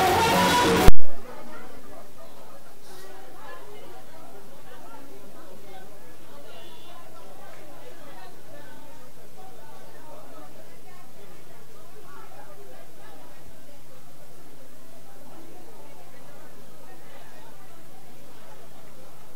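A crowd of men and women murmur and chatter quietly nearby.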